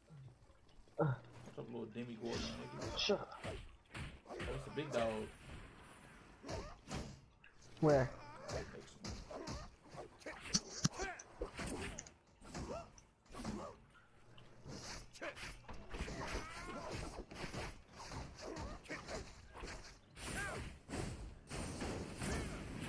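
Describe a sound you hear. Swords clash and slash in quick, repeated strikes.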